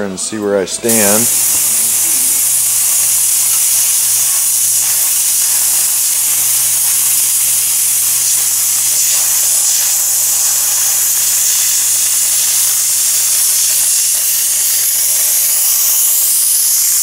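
A sandblaster hisses loudly and steadily outdoors.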